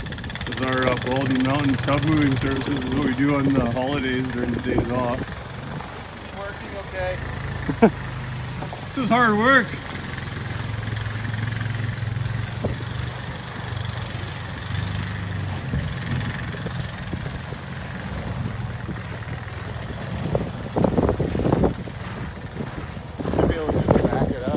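A quad bike engine hums steadily at low speed.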